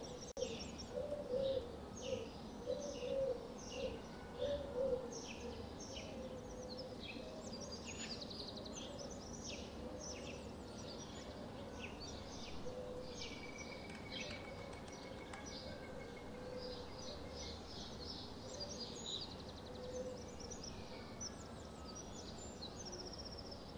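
Small birds chirp and twitter in quick high bursts outdoors.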